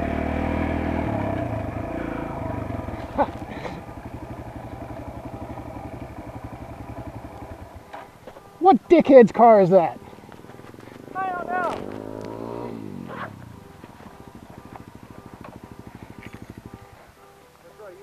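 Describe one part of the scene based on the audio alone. A dirt bike engine idles close by, putting steadily.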